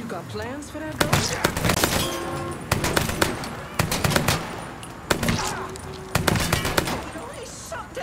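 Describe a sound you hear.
A submachine gun fires in loud rapid bursts.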